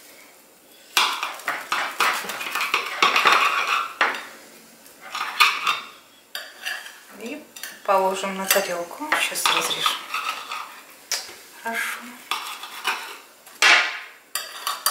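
A knife crunches through a crisp baked crust.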